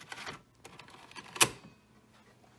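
A floppy disk clicks into a disk drive.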